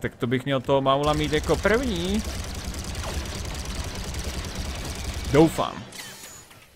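Laser blasters fire rapidly.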